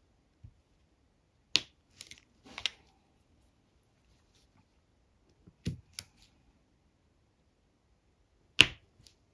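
Small plastic beads click and tap as they are pressed onto a sticky board.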